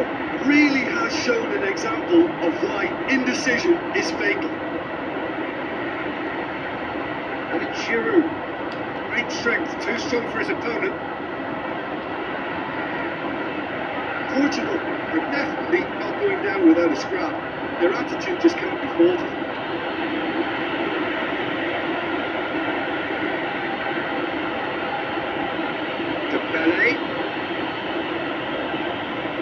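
Stadium crowd noise from a football video game plays steadily through a television loudspeaker.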